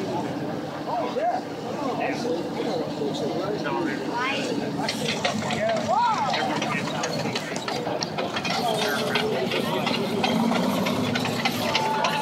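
A crowd of adults murmurs and chatters nearby.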